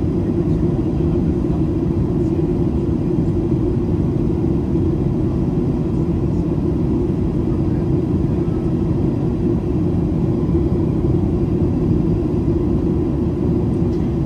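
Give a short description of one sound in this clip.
A jet engine roars steadily in a low, constant drone.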